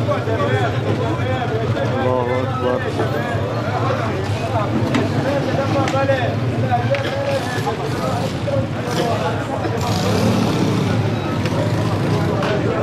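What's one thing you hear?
A crowd of men talk and shout outdoors at a distance.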